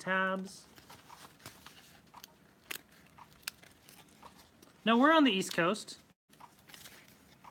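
Cardboard pieces rustle and click as they are handled.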